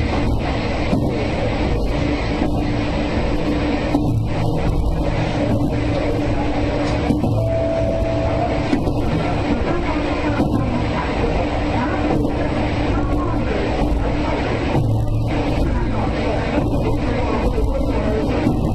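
Train wheels click rhythmically over rail joints.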